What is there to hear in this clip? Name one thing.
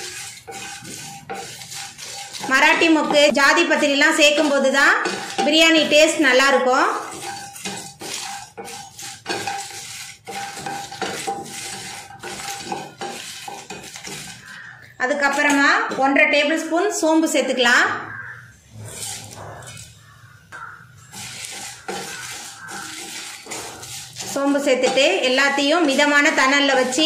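A wooden spatula scrapes and clatters against a metal pan.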